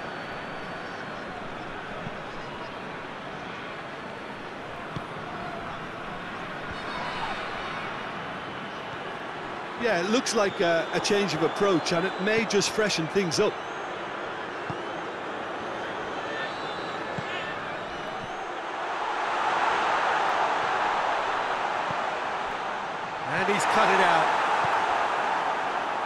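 A stadium crowd murmurs steadily.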